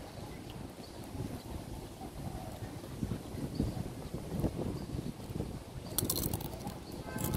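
Wind rumbles and buffets outdoors in gusts.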